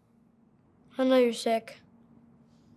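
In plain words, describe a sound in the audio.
A boy speaks quietly nearby.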